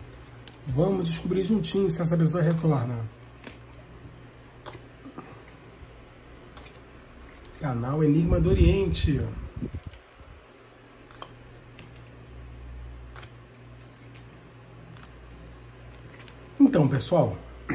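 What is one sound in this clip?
Playing cards are laid down one by one on a table with soft taps.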